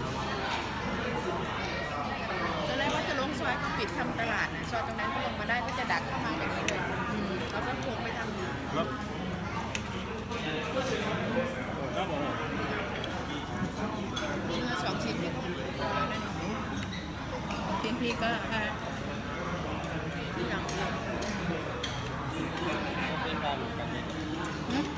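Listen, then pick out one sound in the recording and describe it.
A crowd of diners chatters in a busy room.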